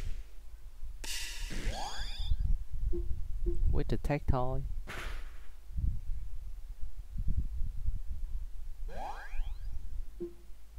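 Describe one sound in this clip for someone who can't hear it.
Quick electronic whooshes sweep upward during attacks.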